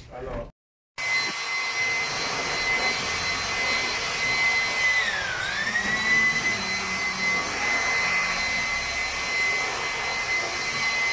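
An electric drill whirs steadily, dipping in pitch as it bites.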